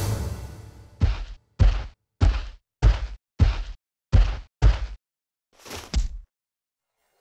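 Heavy footsteps thump in a steady rhythm.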